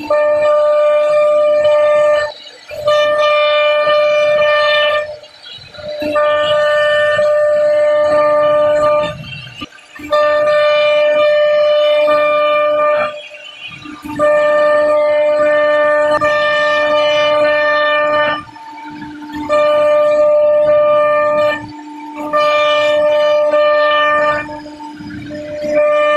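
A high-pitched spindle whines steadily as a router bit cuts into wood, in bursts with short pauses.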